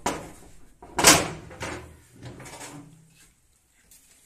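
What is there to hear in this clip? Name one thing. A metal window latch rattles and clanks open.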